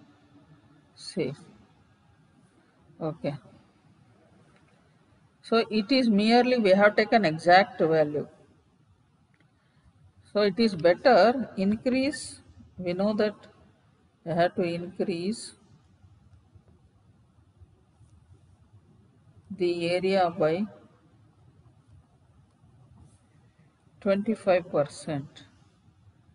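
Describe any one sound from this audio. A woman speaks calmly in bursts through an online call, pausing between phrases.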